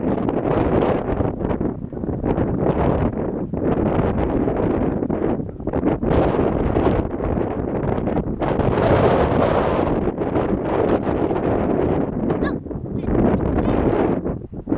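Strong wind blusters across the microphone outdoors.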